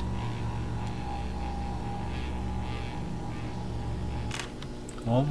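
A wall-mounted charging station hums as it charges.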